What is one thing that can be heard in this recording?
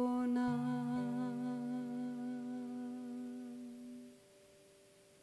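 An acoustic guitar chord rings out and slowly fades.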